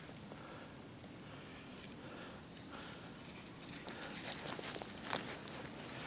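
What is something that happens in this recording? A dog runs across dry grass toward the listener.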